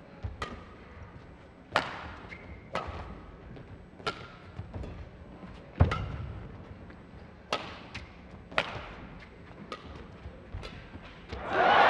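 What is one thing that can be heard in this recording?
Badminton rackets strike a shuttlecock back and forth.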